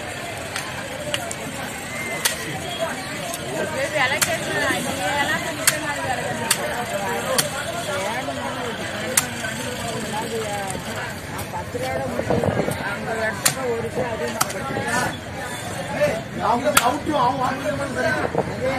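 A cleaver chops sharply through fish on a wooden block.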